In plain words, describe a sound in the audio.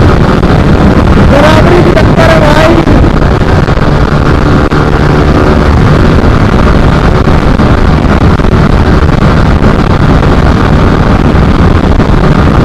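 Wind roars past a rider at high speed.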